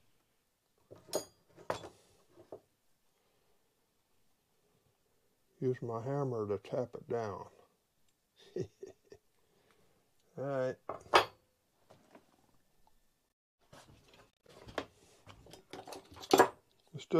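Metal tools clink and tap on a workbench.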